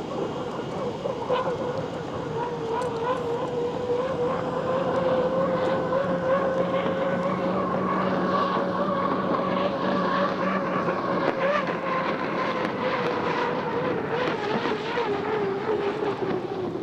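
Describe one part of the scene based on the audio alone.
A racing boat's engine roars loudly and steadily as the boat speeds across the water.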